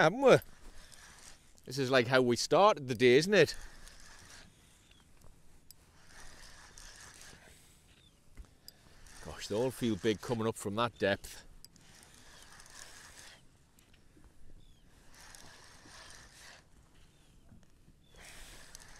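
A fishing reel whirs.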